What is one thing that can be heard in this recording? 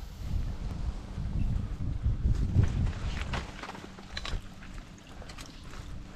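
Footsteps crunch through dry twigs and brush close by.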